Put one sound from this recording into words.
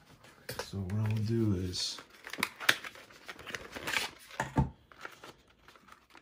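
A plastic case rattles and taps in hands.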